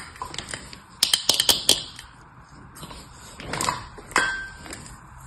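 A plastic mould taps and clicks against a table.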